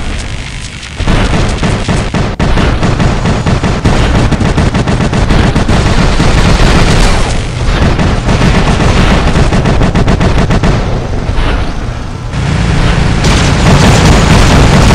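Heavy machine guns fire in rapid, loud bursts.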